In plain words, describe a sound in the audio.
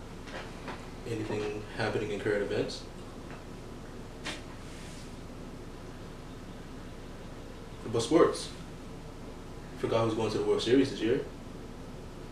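A young man talks calmly close by, in short bursts.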